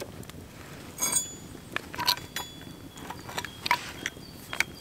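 A metal hand drill clinks and squeaks as it is handled.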